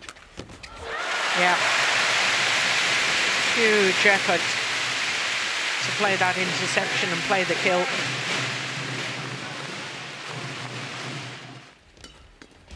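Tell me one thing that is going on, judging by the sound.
A crowd cheers and applauds loudly in a large arena.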